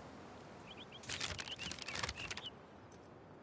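Paper rustles as a map is unfolded.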